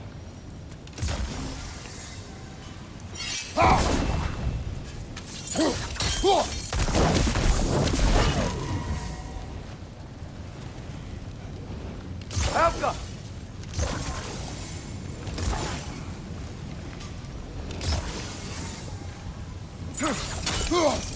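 Magical crystals burst with crackling, ringing blasts.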